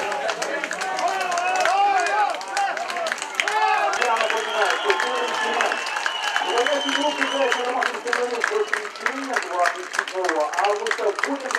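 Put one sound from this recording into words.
A group of young men chant and shout loudly together outdoors.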